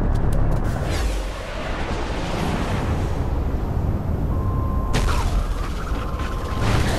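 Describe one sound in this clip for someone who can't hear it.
Wind rushes past as a figure glides through the air.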